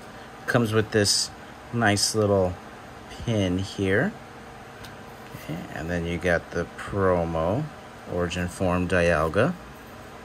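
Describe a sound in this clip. Hands handle and slide trading cards with soft rustles and taps.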